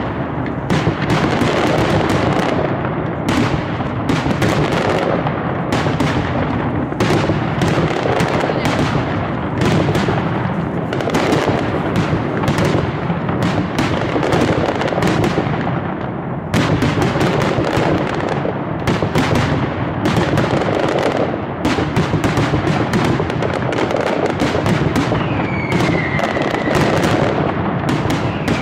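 Firecrackers explode in a dense, rapid barrage of loud bangs.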